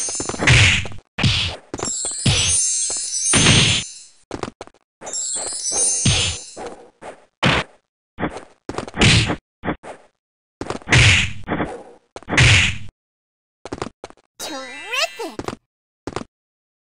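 Punches and kicks land with sharp, quick game hit sounds.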